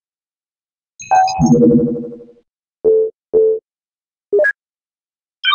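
Short electronic beeps and chimes sound as menu options are clicked.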